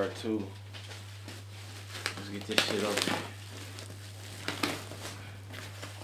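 Plastic wrapping crinkles and rustles under hands.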